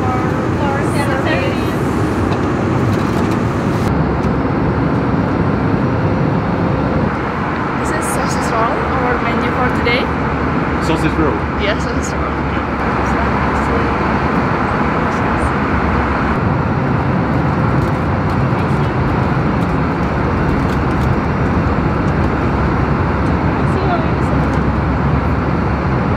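A jet engine hums steadily inside an aircraft cabin.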